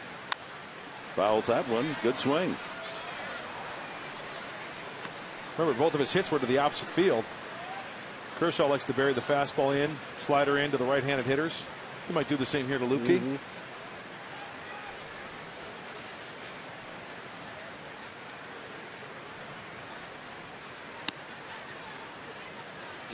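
A crowd murmurs steadily throughout a large outdoor stadium.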